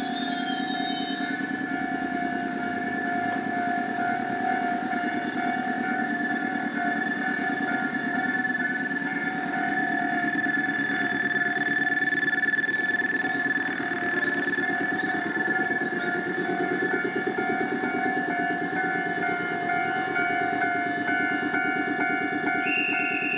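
A train rolls slowly past with rumbling wheels.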